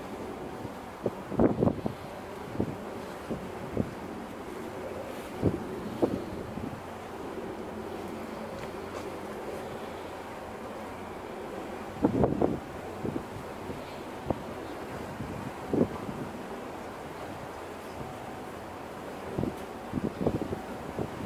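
Water laps gently against a hull outdoors.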